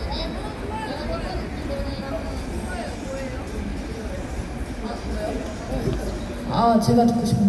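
Two young women talk quietly to each other close by.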